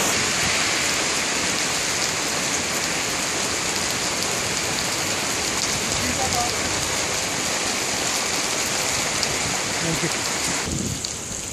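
Rain patters on an umbrella.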